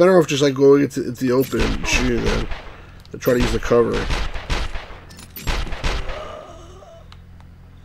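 A middle-aged man talks with animation into a nearby microphone.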